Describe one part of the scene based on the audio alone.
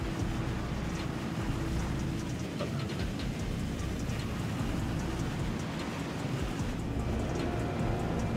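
A spacecraft's engines rumble and hum steadily.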